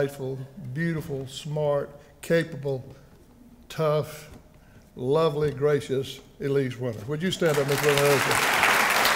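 An elderly man speaks through a microphone to an audience.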